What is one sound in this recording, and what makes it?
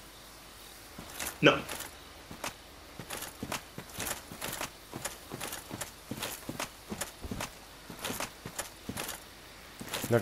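Armoured footsteps clank and crunch over soft ground at a steady walking pace.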